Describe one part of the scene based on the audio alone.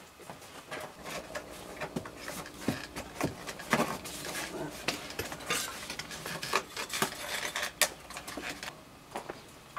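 A hand tool scrapes and taps against a stone wall.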